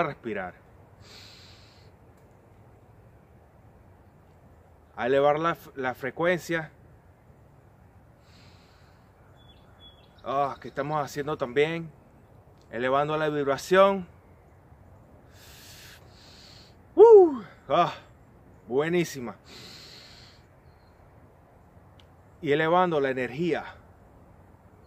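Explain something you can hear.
A young man speaks calmly and expressively close by, in bursts with pauses.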